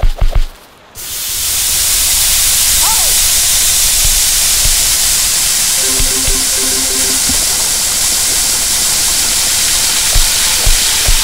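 Meat patties sizzle steadily on a hot grill.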